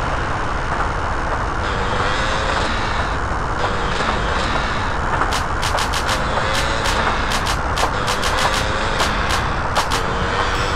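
A motorbike engine revs steadily.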